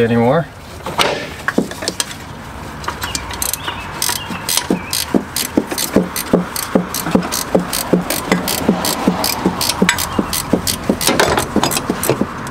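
A ratchet wrench clicks rapidly.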